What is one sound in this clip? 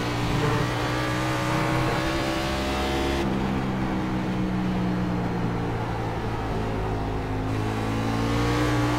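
A racing car engine roars steadily, shifting pitch as the car brakes and accelerates through a bend.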